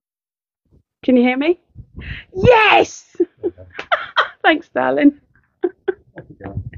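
A woman laughs loudly and shrieks.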